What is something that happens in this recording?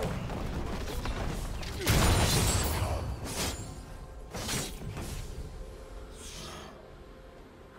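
Magic spells whoosh and crackle during a clash of game characters.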